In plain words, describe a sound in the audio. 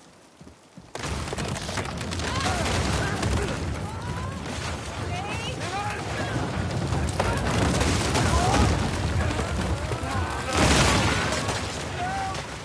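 A wooden structure collapses with crashing and cracking.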